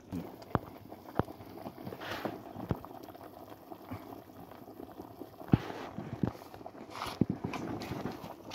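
A wood fire crackles and pops.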